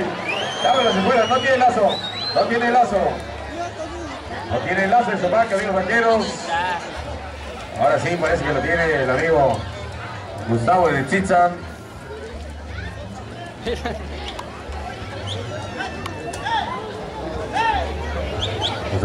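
A crowd of spectators murmurs and calls out in a large open arena.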